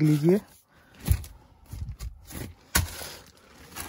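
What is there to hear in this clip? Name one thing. Plastic sheeting rustles and crinkles under a hand.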